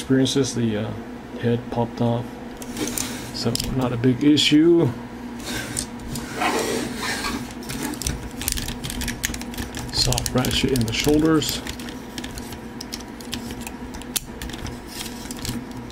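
Plastic toy parts click and clack as hands move them.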